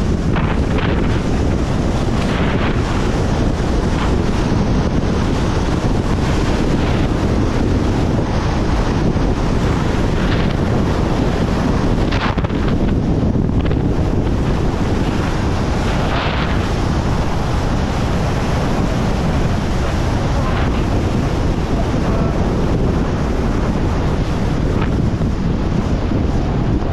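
Strong wind roars and buffets past at high speed.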